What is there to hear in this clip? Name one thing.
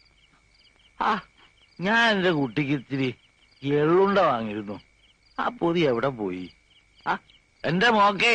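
An elderly man speaks in a strained, distressed voice close by.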